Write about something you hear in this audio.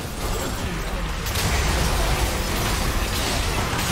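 Explosive blasts boom as a tower is destroyed in a game.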